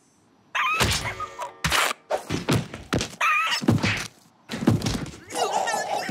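A heavy thud crashes down.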